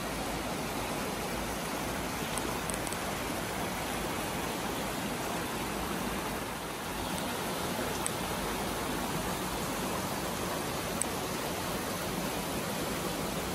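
A small stream trickles and splashes over rocks nearby.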